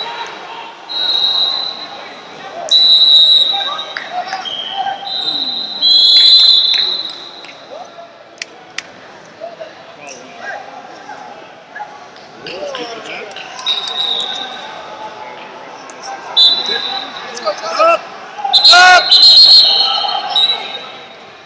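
Wrestling shoes squeak sharply on a mat.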